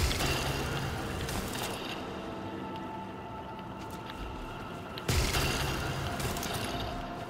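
A burst of a heavy whooshing blast sounds and fades.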